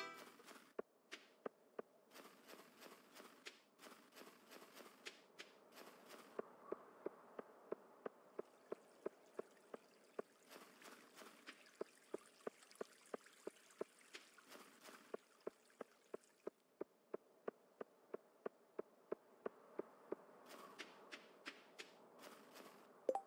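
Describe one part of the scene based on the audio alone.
Footsteps crunch quickly and evenly on snow and stone.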